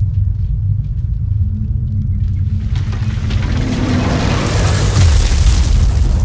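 A heavy iron gate grinds and rumbles as it rises.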